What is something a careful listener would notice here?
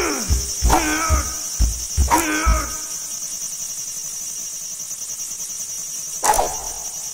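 A sword swishes through the air.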